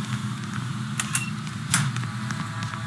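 A door swings open with a thud.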